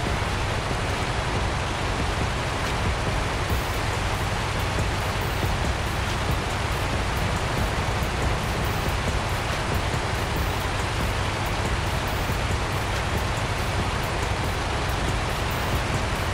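A truck engine rumbles steadily as it drives along a rough track.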